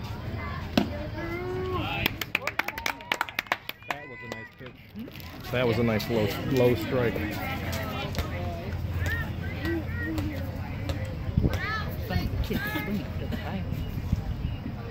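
Adults and children chatter and call out nearby, outdoors.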